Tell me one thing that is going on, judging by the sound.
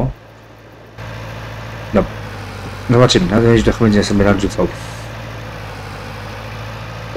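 A tractor engine hums steadily at low speed.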